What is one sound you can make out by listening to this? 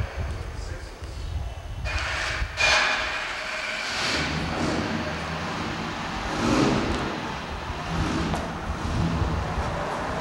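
A car engine rumbles low as a car rolls slowly forward.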